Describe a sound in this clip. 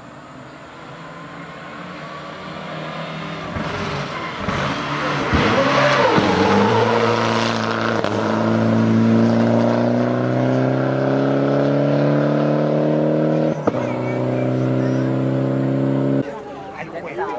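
A rally car engine roars closer and speeds past at high revs.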